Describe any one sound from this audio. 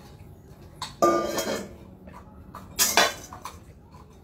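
A metal bowl clatters on a tiled floor.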